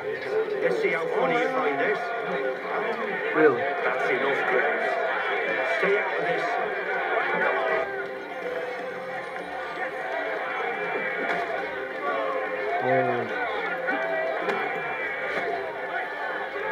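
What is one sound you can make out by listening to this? A crowd of men shouts and cheers.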